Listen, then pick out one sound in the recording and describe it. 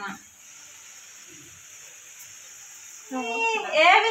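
Hot oil sizzles softly in a pan.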